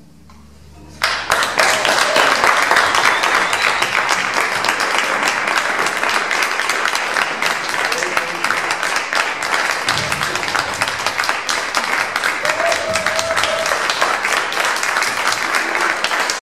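Musicians applaud with a dense patter of clapping.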